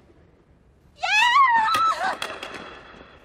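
A woman laughs loudly.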